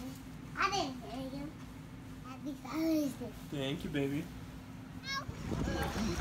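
A toddler babbles and laughs close by.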